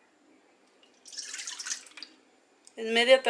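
Milk pours into a metal bowl with a splashing gurgle.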